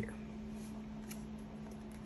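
Playing cards shuffle softly in hands.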